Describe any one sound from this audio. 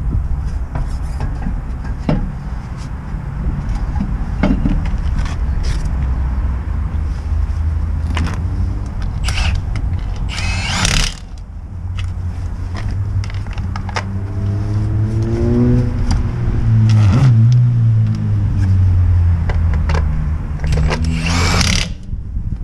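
Metal clinks and knocks as a wheel is fitted onto a car hub.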